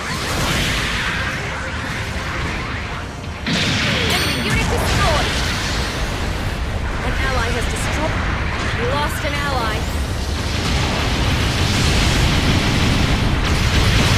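Rocket thrusters roar steadily.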